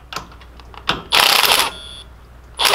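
A cordless drill whirs briefly.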